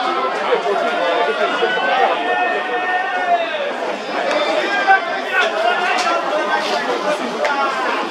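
A large crowd chants and cheers loudly.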